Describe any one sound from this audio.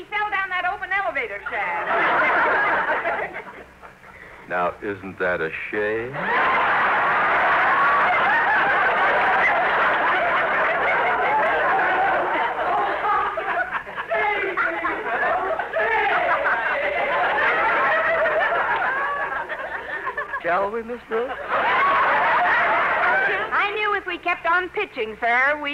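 A woman speaks with animation, heard through an old radio recording.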